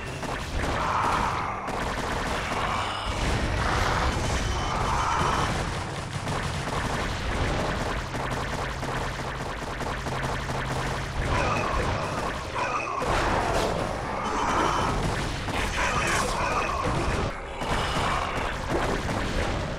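Game battle sounds of weapons firing and explosions play throughout.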